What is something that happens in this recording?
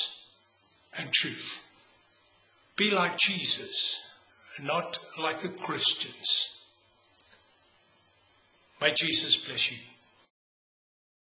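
An older man speaks earnestly and up close.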